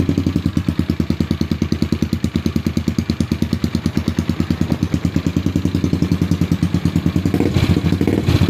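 A bored-out 200cc scooter engine idles with a loud, lumpy pulse through an aftermarket exhaust.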